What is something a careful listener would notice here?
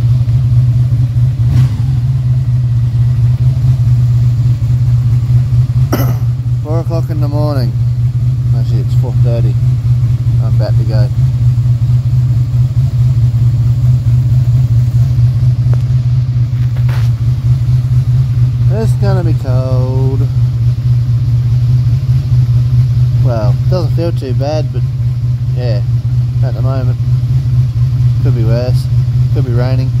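A motorcycle engine idles with a steady, low rumble close by.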